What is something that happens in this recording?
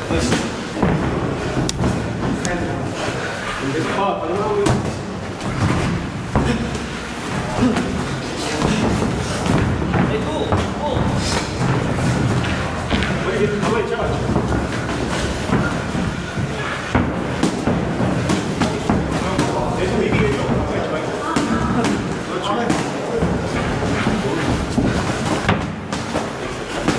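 Feet shuffle and squeak on a padded ring floor.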